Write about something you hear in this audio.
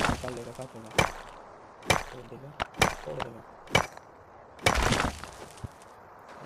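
A pickaxe strikes stone with sharp, repeated knocks.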